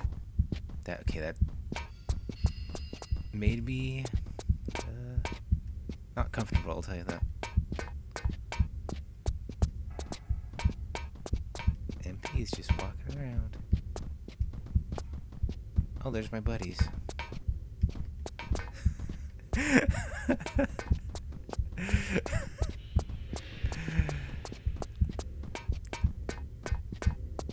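Quick footsteps run steadily across a hard floor.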